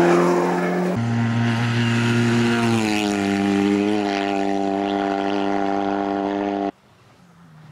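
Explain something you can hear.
A small car engine buzzes loudly as the car drives past and away.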